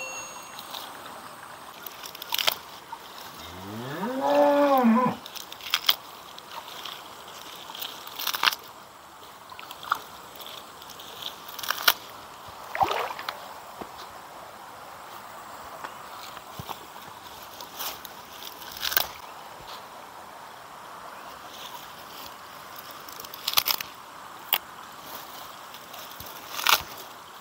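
Leafy plant stems snap and rustle as they are picked by hand.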